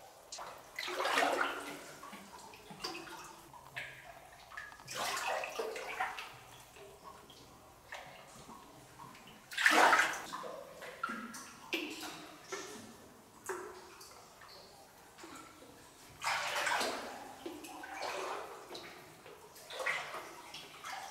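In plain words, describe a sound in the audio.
Water splashes and sloshes in short bursts as a person wades through it.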